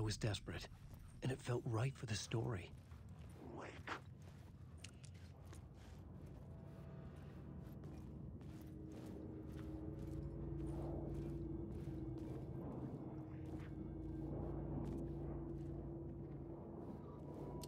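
Footsteps crunch on gravel and rail ties.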